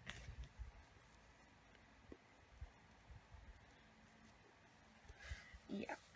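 A hand rubs and presses down on paper.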